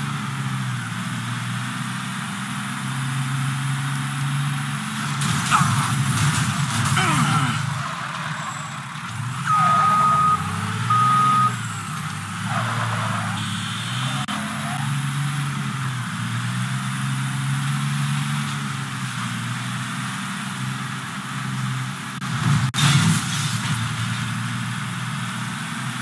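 An engine hums steadily as a vehicle drives along.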